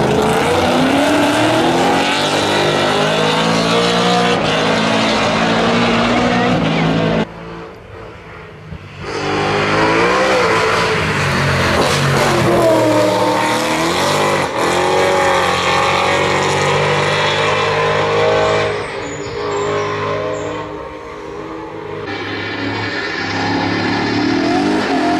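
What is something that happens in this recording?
A racing car engine roars loudly, revving up and dropping as the gears shift.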